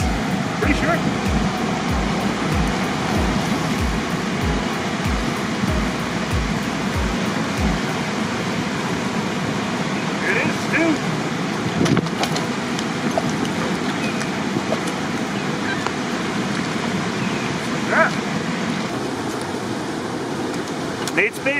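Fast water rushes and churns steadily outdoors.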